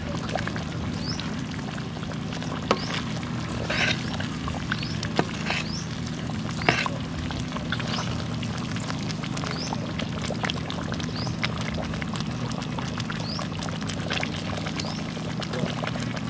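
A metal ladle scrapes and clinks against a wok.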